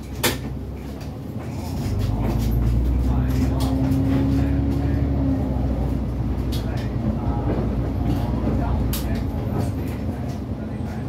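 The bus body rattles and clicks as it drives.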